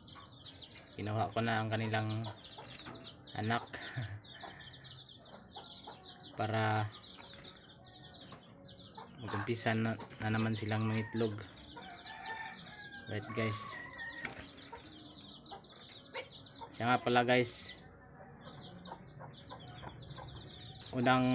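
A dove coos with deep, repeated calls close by.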